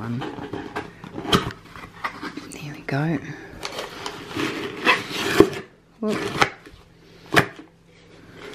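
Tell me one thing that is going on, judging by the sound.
Cardboard box flaps scrape and rustle close by.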